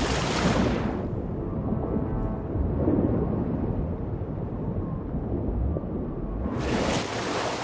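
Sound turns dull and muffled underwater.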